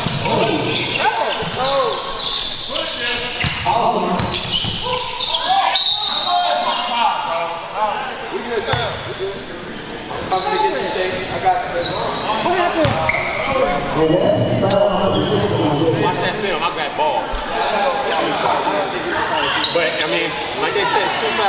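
Several young men shout and talk across an echoing gym.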